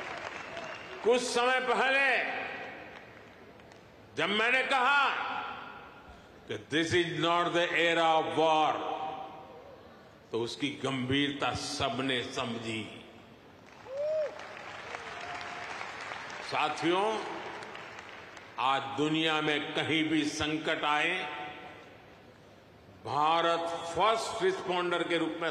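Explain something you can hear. An elderly man speaks forcefully through a microphone, heard over loudspeakers in a large hall.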